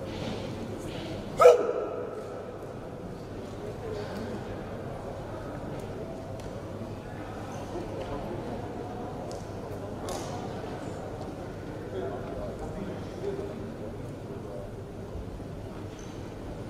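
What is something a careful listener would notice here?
A crowd murmurs quietly in the distance.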